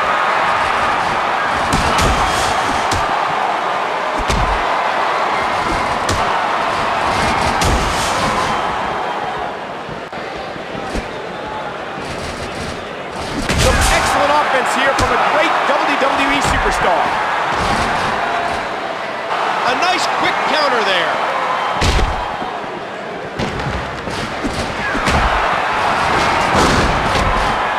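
Punches and body slams thud sharply.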